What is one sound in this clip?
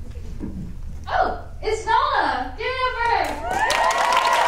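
A second young woman speaks with animation through a microphone.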